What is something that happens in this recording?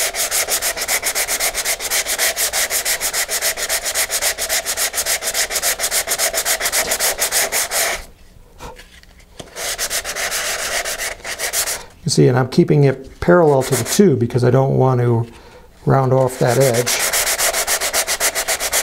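Sandpaper rubs back and forth quickly on a paper tube.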